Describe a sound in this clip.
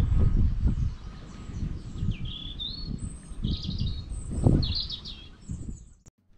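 A small stream trickles and gurgles nearby.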